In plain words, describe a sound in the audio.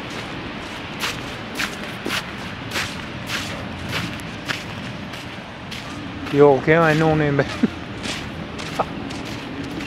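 Footsteps crunch in snow close by.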